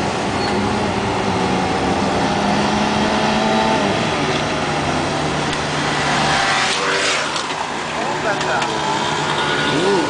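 Motorcycle engines rev and drone loudly nearby.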